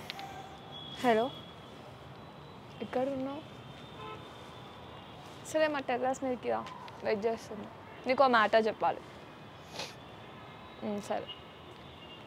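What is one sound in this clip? A young woman talks calmly on a phone, close by.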